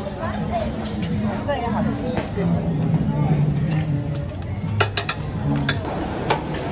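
Metal tongs clink against shells and a ceramic dish.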